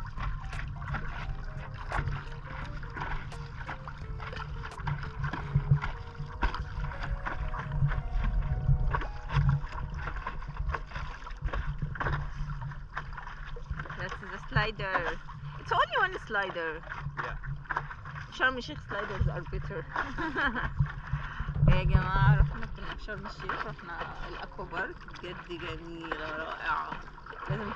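Water laps and splashes against a small boat.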